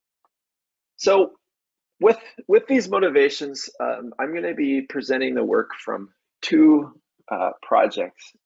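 A man speaks calmly into a microphone over an online call.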